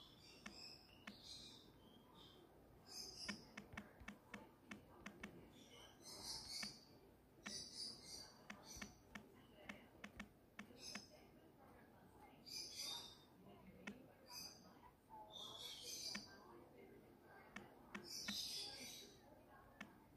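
A phone keyboard clicks softly with quick taps.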